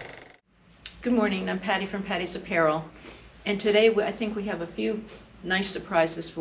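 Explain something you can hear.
A middle-aged woman speaks calmly and clearly into a nearby microphone.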